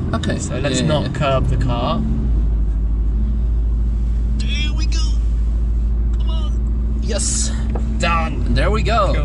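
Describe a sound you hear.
A car engine hums low and steady inside the cabin.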